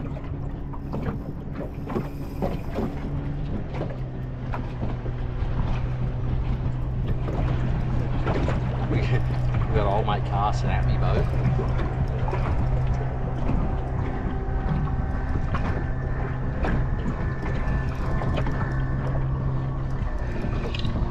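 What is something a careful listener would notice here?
A boat motor hums steadily, then stops.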